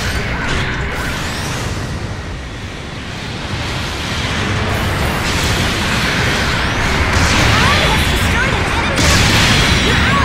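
Heavy gunfire blasts in bursts.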